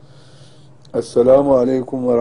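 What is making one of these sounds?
An elderly man speaks in a loud, steady voice close to a microphone.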